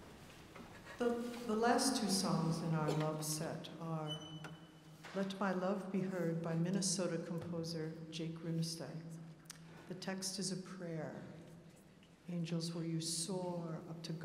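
A large choir sings in a big echoing hall.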